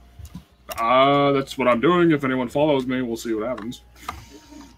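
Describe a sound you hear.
A man speaks with animation over an online call, stretching his words in a sing-song way.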